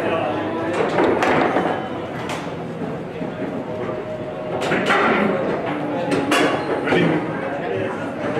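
Foosball rods clack and rattle as players spin and slide them.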